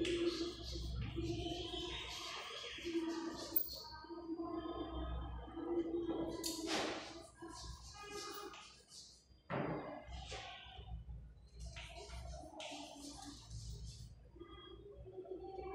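A woman speaks calmly, close by, as if teaching.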